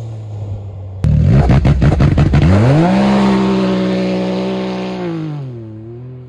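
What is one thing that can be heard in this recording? Studded tyres spin and scrape across ice.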